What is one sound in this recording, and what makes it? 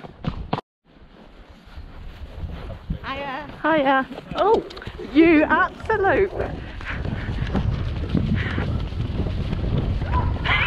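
Horse hooves thud softly on grass.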